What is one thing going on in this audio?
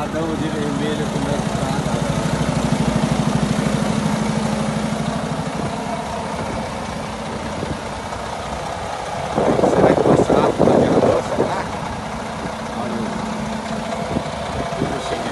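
A truck's diesel engine idles with a low, steady rumble.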